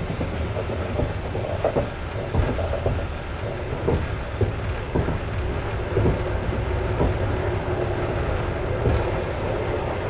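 Train wheels knock on rail joints.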